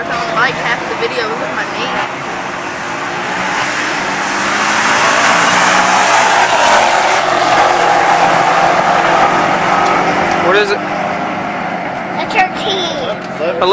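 Race car engines roar loudly as cars accelerate away down a track.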